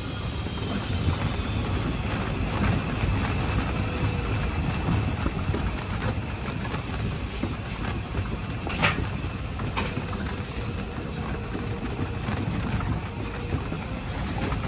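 A small electric cart whirs along steadily.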